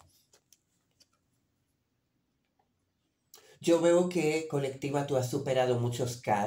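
Playing cards rustle and tap as hands handle them.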